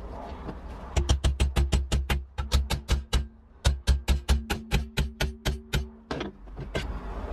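A hammer strikes metal in a rapid series of sharp ringing blows.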